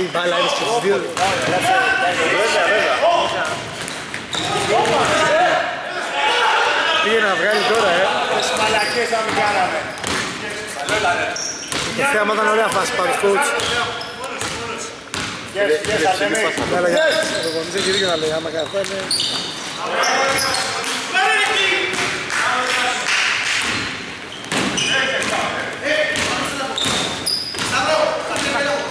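Men shout and call out to each other in an echoing gym.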